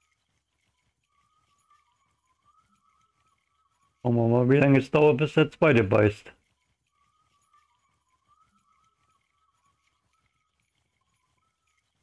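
A fishing reel whirs softly as the line is wound in.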